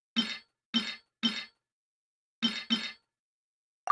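Short interface clicks tap several times.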